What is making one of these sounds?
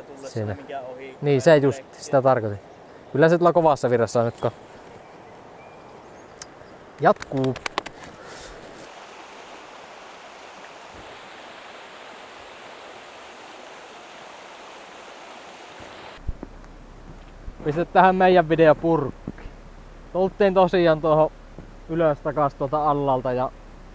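A young man talks casually, close to the microphone.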